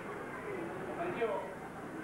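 A piano plays.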